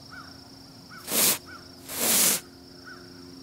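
An aerosol can hisses loudly in short spray bursts.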